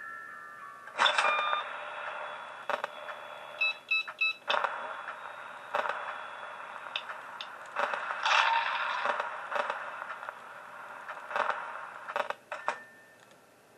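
Loud static hisses and crackles.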